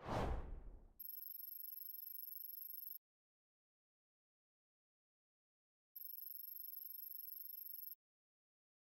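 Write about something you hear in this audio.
Soft electronic ticking chatters.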